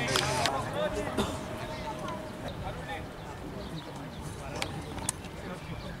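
Men in a small crowd of spectators talk nearby outdoors.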